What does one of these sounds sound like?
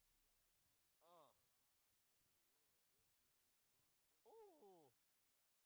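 A young man raps.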